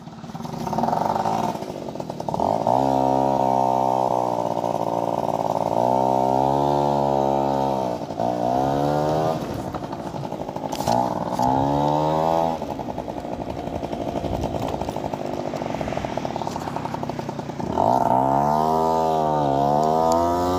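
A motorcycle engine revs up and down, rising and falling in pitch as it rides.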